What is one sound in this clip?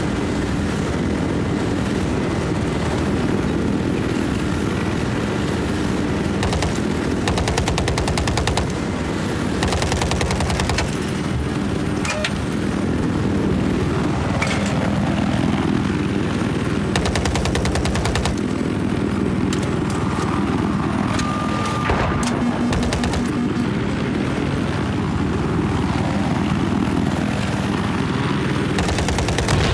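A helicopter's rotor thumps loudly and steadily.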